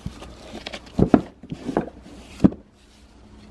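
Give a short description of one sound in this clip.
A hardcover book scrapes and thumps as it is pulled from a tightly packed shelf.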